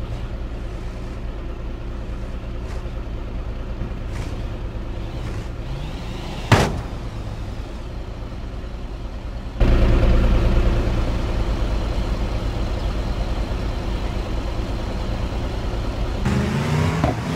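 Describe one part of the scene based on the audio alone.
A car engine hums steadily as a vehicle drives up a ramp.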